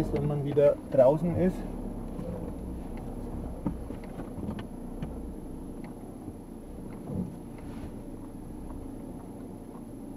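Tyres rumble over a rough cobbled road.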